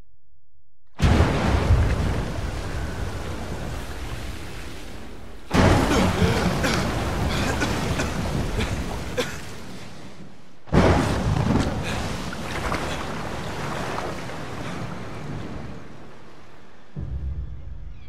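Heavy waves roar and crash on a stormy sea.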